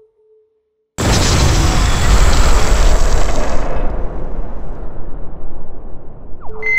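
A fire roars loudly and then dies down.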